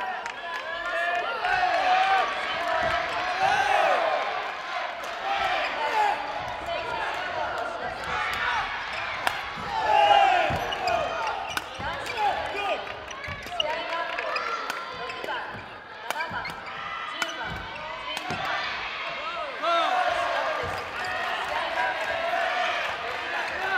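Many young people chatter and call out in a large echoing hall.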